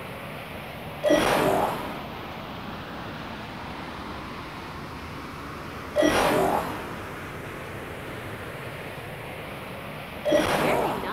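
A chime rings out as a ring is passed.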